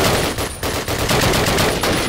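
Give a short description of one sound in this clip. A machine gun fires a burst of shots.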